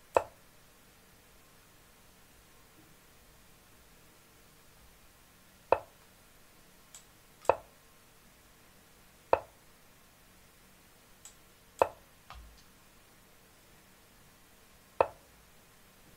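A computer chess game plays a short click as each piece is moved.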